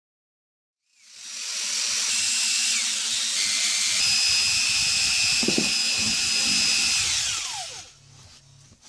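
A power drill whirs loudly as it bores through plastic.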